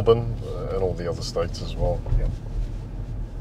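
A man speaks calmly from close by.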